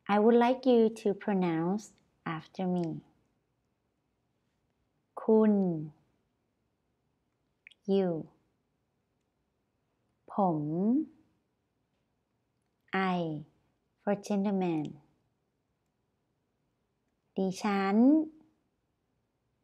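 A young woman speaks calmly and clearly into a close microphone, pausing between short phrases.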